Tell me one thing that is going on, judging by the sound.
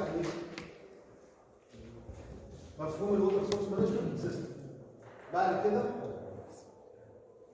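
A man speaks in a lecturing tone in a room with a slight echo.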